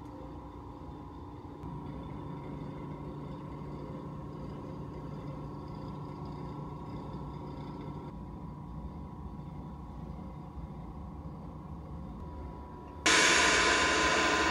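Electrical cabinets and ventilation hum steadily.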